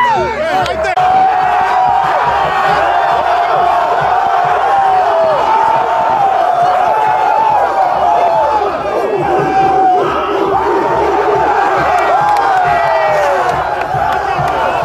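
A group of young men sing together loudly in chorus.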